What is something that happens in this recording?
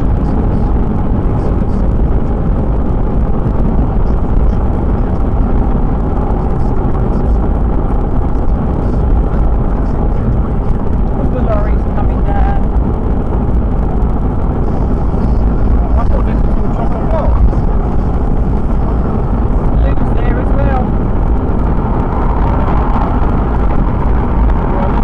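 Tyres roar steadily on the road at speed.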